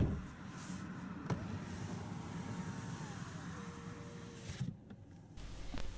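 An electric car window motor whirs as the glass slides down.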